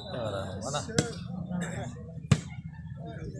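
A hand strikes a volleyball with a sharp slap.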